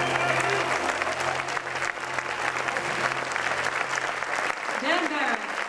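A trombone plays a jazz tune.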